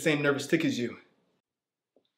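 A young man speaks tensely up close.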